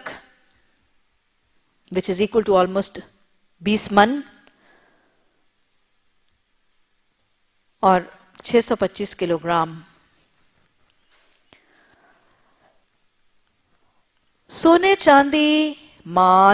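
A woman speaks slowly and melodically into a microphone, with long pauses.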